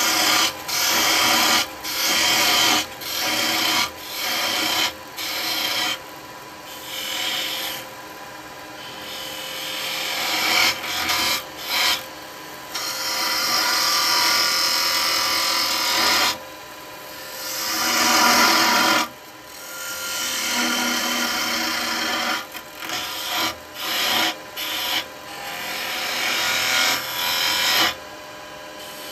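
A chisel scrapes and hisses against spinning wood in repeated bursts.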